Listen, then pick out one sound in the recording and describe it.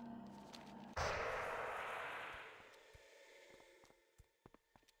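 A magical whoosh bursts out and slowly fades.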